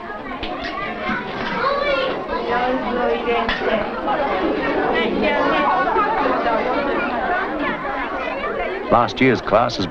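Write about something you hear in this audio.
Young children chatter and call out together.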